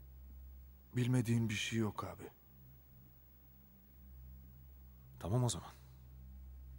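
A man speaks briefly in a low, tense voice.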